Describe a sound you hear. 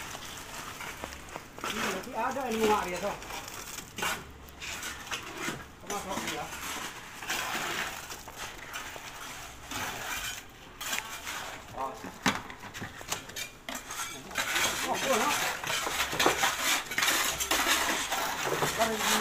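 Wet concrete slides and splashes out of a tipped wheelbarrow.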